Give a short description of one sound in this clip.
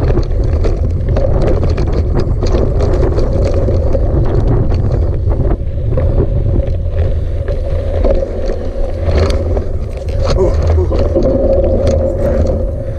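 Tyres crunch and rattle over loose gravel.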